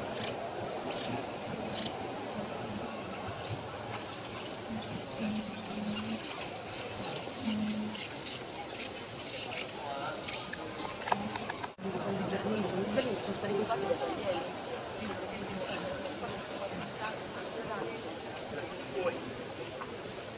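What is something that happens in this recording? A crowd of people murmurs and talks, echoing in a large hall.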